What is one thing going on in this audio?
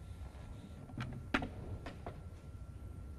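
Snooker balls click against each other.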